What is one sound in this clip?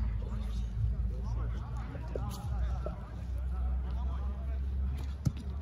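Young men shout and call out to each other at a distance outdoors.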